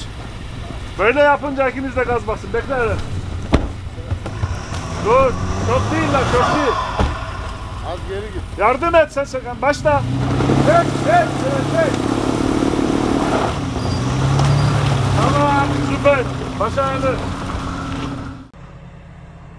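An engine revs as a vehicle strains in mud and snow.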